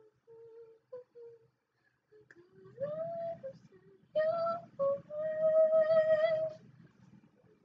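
A young boy sings in long, drawn-out notes close to a microphone.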